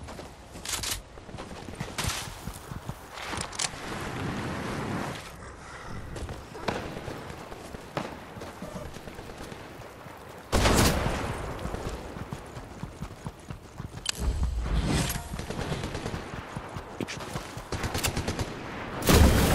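Footsteps patter on grass and sand.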